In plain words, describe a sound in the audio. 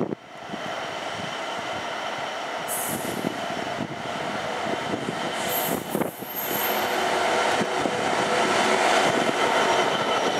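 A diesel locomotive engine rumbles loudly as it approaches and passes close by.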